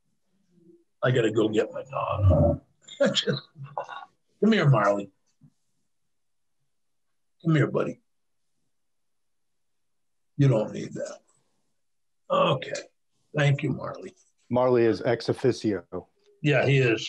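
An elderly man speaks calmly over an online call, with pauses.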